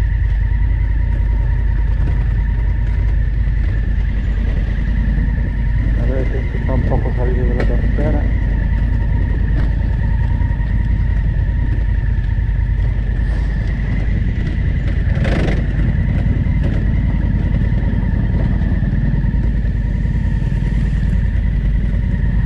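Tyres crunch over gravel and stones.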